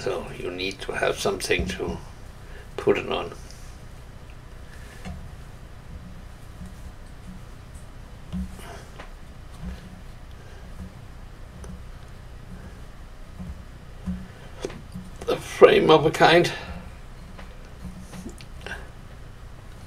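Small wooden parts click and tap softly as hands handle them.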